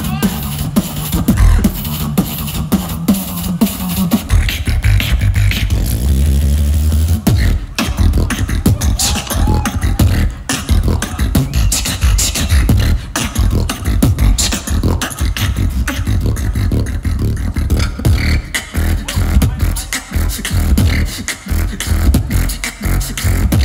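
A young man beatboxes loudly through a microphone and a loudspeaker system, with punchy bass beats and crisp clicks.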